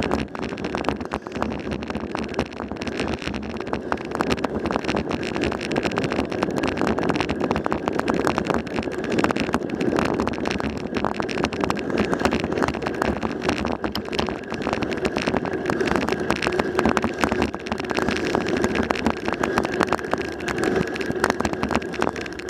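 Tyres roll over a paved road.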